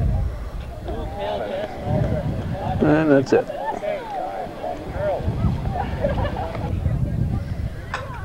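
A crowd of people chatter outdoors.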